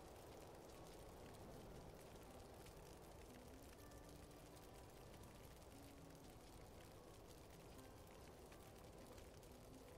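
Soft interface clicks sound now and then.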